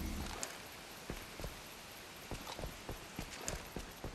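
Footsteps thud on a hard roof.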